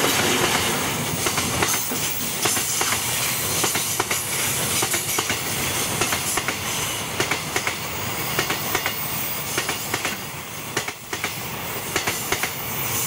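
Freight wagons clatter rhythmically over the rail joints.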